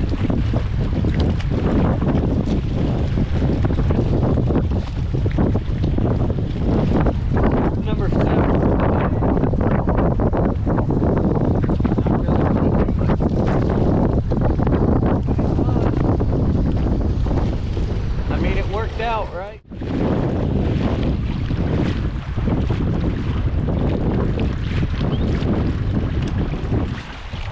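Wind buffets the microphone outdoors with a steady roar.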